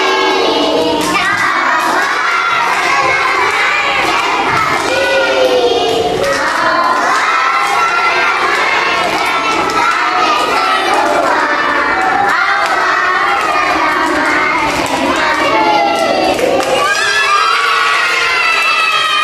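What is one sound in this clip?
A group of young children sing together loudly, close by.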